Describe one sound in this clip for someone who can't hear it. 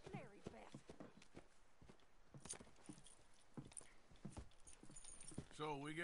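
A horse's hooves crunch slowly through snow.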